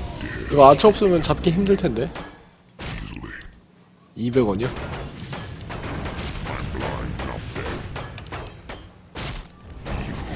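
Weapons clash and strike in a fight.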